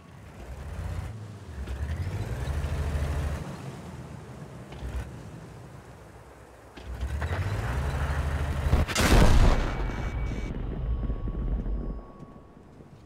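A tank engine rumbles and revs.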